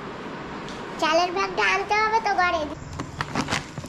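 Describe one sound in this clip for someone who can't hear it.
An elderly woman speaks close by.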